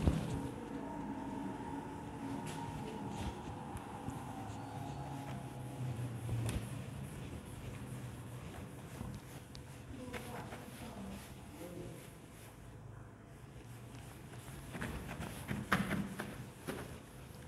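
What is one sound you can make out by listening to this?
A board eraser rubs across a whiteboard.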